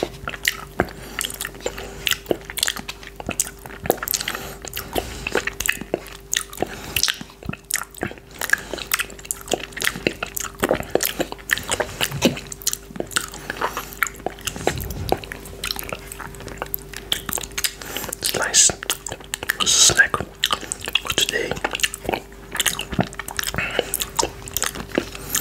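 A man licks and sucks yoghurt off a finger close to a microphone with wet smacking sounds.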